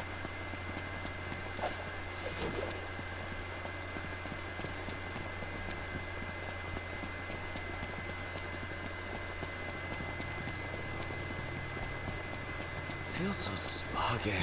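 Footsteps run quickly over dry grass and dirt.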